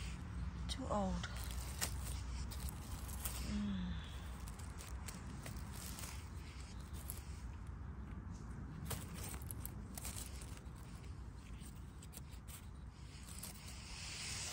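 A small knife scrapes and cuts through a mushroom stem.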